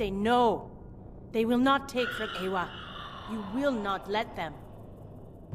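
A woman speaks forcefully and with emotion.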